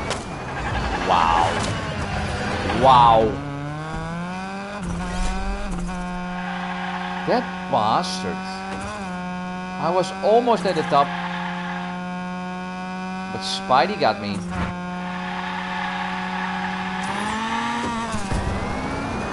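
Tyres screech as a racing car drifts around bends.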